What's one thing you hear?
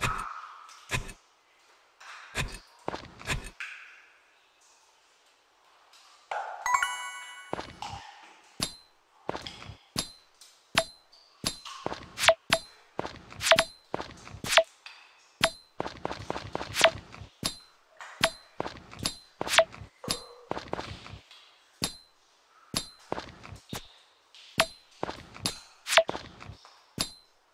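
A hammer strikes rocks again and again with sharp cracks.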